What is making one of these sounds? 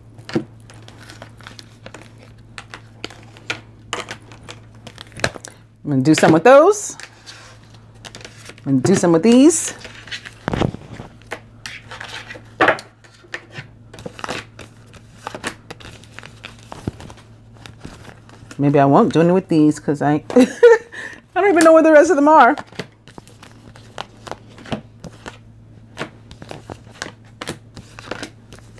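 Playing cards are shuffled and laid down on a table with soft slaps and flicks.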